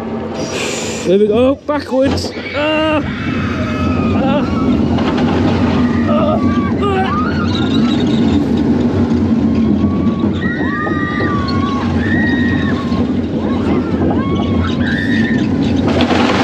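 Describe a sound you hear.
Riders scream with excitement.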